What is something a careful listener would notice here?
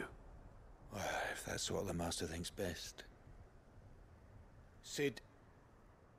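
A young man answers hesitantly.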